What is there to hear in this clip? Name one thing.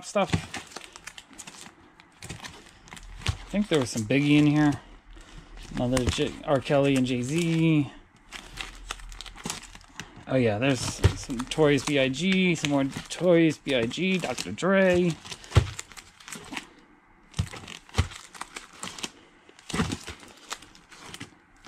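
Record sleeves clack and rustle as they are flipped through one by one.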